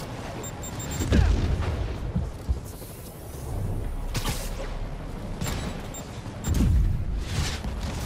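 Heavy thuds and impacts boom.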